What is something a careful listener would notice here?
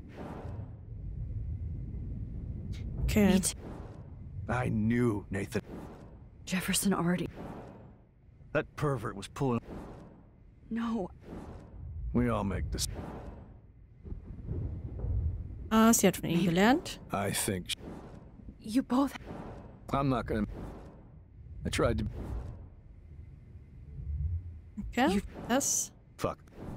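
A young woman talks calmly into a microphone.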